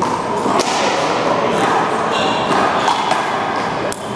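A handball player slaps a rubber ball against the wall.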